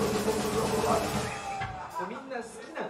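A rock band plays loudly through amplifiers.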